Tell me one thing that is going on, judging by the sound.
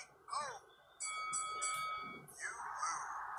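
A short electronic jingle plays.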